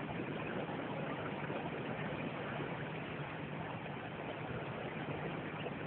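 A steamboat's engine chugs and hums steadily close by.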